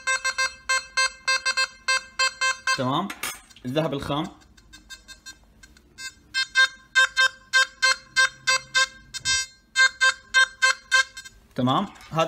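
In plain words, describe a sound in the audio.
A metal detector beeps rapidly in short, repeated pulses.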